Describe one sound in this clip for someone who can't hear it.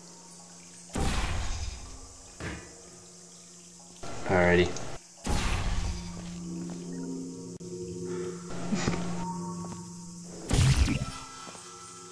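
A sci-fi gun fires with a sharp zap.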